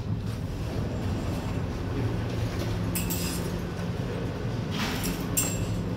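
Elevator doors slide open and shut.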